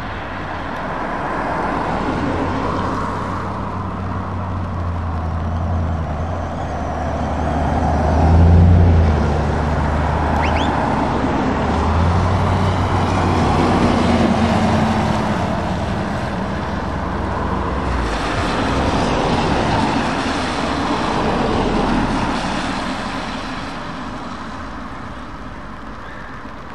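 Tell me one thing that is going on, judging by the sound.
Traffic hisses past on a wet road.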